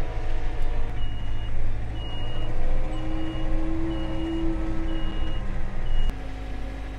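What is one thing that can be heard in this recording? A tractor's reversing alarm beeps steadily.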